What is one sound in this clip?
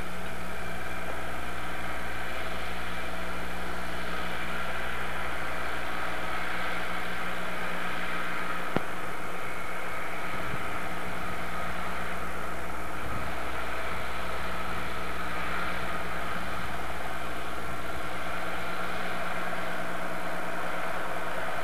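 A small tractor engine chugs steadily nearby, outdoors.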